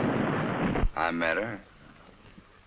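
An older man answers softly.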